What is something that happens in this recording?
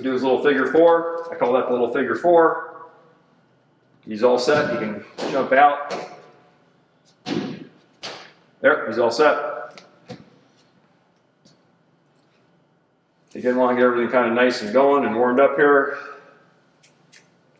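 A man speaks calmly and clearly nearby, giving instructions.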